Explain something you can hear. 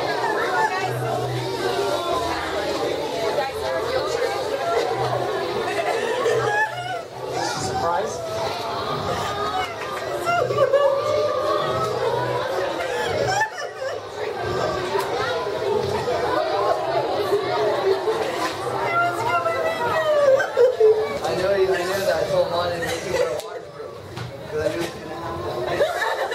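Many young people chatter and call out nearby in an echoing hallway.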